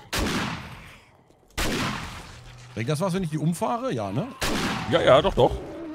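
A rifle fires sharp, loud shots that ring out.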